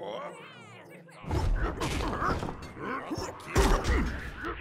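A spiked mace thuds heavily.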